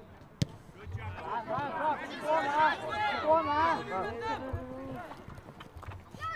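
Spectators cheer and call out from the sideline.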